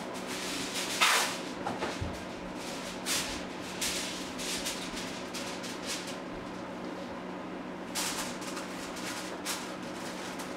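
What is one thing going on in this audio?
Footsteps thud down stairs and across a floor indoors.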